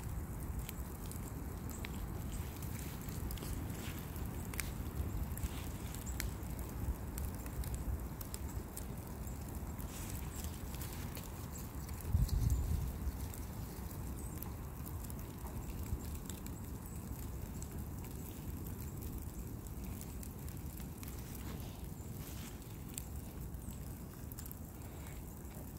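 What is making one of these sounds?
A fire roars and crackles with sharp pops.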